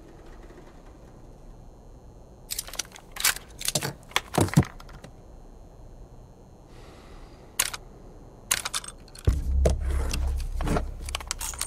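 Metal parts of a gun click and clack as the gun is handled.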